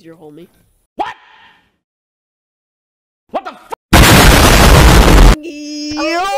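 A young man exclaims loudly close to a microphone.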